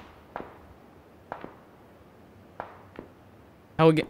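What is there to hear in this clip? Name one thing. Footsteps fall softly on the ground.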